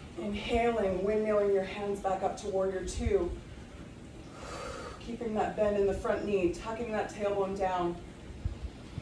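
A woman speaks calmly, as if giving instructions, close by.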